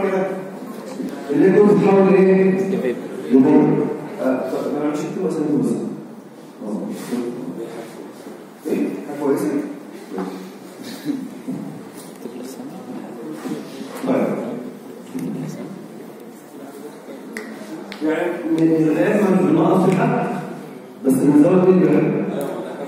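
A man speaks calmly through a microphone and loudspeaker in an echoing room.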